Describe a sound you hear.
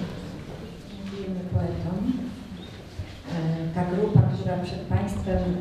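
A woman speaks calmly into a microphone over a loudspeaker.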